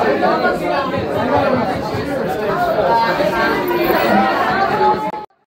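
A crowd of adults talks and chatters loudly close by.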